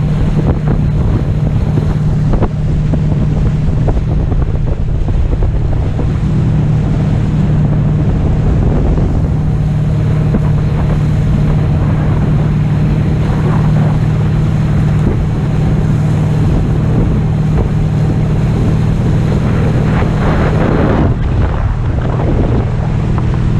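A motorboat engine drones steadily ahead.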